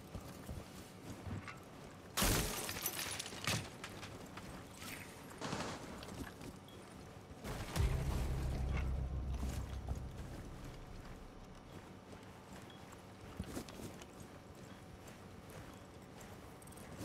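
Footsteps thud softly on a hard floor and snow.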